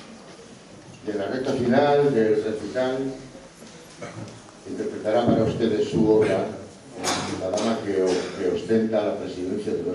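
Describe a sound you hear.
A man sings through a microphone in a hall.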